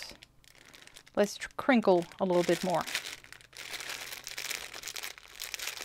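A plastic bag crinkles as it is handled up close.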